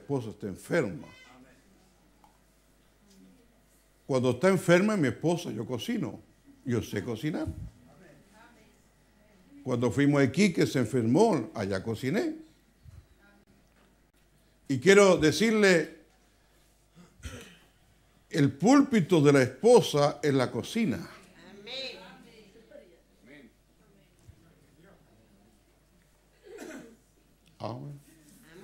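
An elderly man speaks with animation through a microphone in an echoing room, pausing between phrases.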